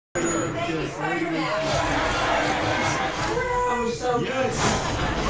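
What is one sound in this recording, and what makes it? A crowd of men and women cheer and talk excitedly over one another.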